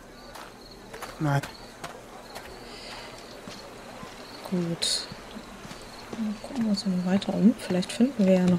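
Footsteps walk over stone paving.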